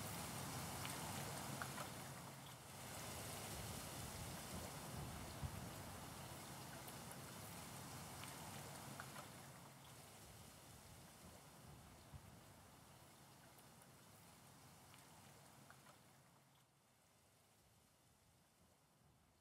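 Gentle waves lap against the shore.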